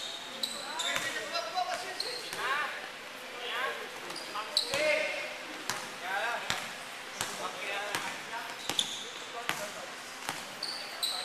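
A basketball bounces on the floor with dull thuds.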